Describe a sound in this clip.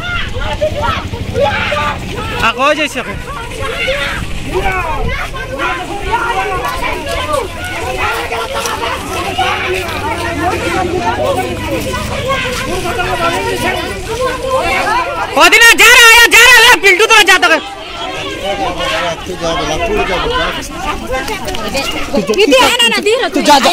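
A crowd of men and women talks and shouts excitedly outdoors.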